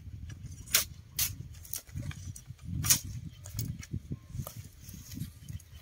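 Bamboo poles clatter and rustle as they shift.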